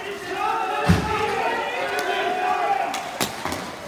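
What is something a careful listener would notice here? Young players shout and call out nearby, outdoors.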